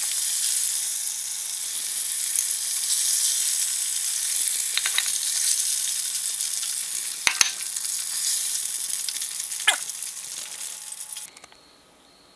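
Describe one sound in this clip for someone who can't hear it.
Hot oil bubbles and sizzles loudly.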